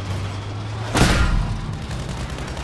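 A tank cannon fires with a loud blast.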